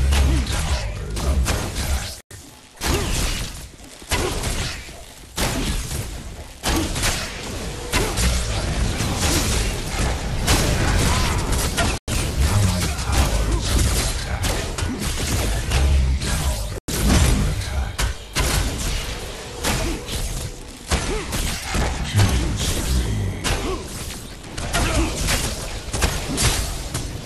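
Weapons fire in rapid bursts with loud impacts and blasts.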